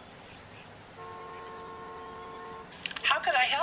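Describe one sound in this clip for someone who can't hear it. A telephone line gives a steady tone.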